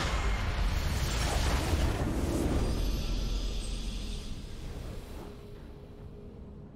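A triumphant game fanfare swells.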